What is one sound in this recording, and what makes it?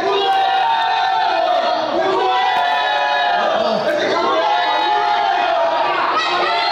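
A crowd of spectators shouts and cheers nearby.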